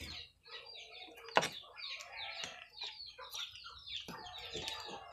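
A knife taps and scrapes on a plastic cutting board.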